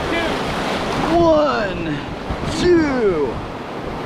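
Paddles splash into churning water.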